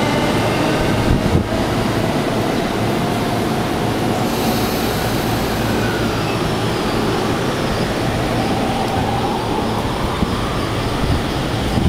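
A train rumbles steadily along the tracks beside the platform.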